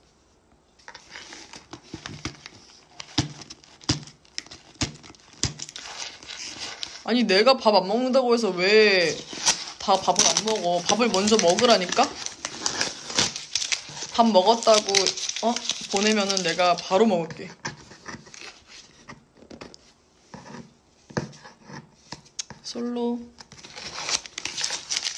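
Small objects click and tap on a table.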